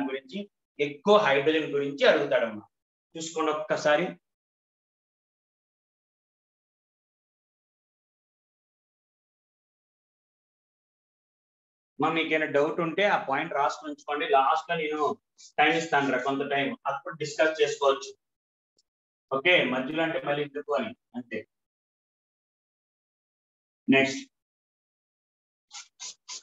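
A man speaks calmly like a teacher, close to the microphone.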